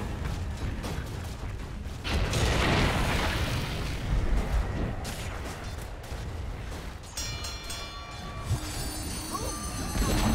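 Magic spells whoosh and crackle in a game battle.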